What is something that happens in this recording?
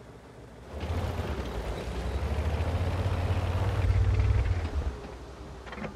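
A tank engine rumbles deeply as the tank drives.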